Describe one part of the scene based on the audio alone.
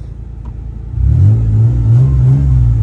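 A car engine cranks and starts.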